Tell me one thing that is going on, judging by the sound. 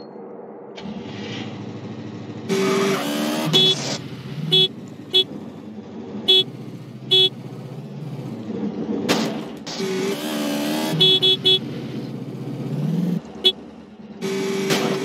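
A motorbike engine hums and revs.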